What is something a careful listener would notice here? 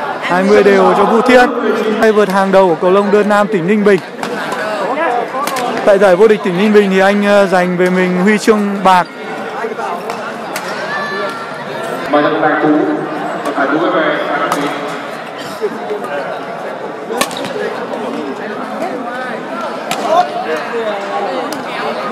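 A badminton racket strikes a shuttlecock with sharp pops in a large echoing hall.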